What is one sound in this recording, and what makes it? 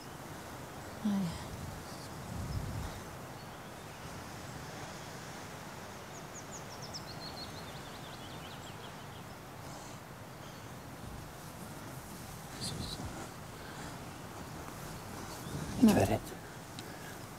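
A young woman speaks in a soft, breathy voice close by.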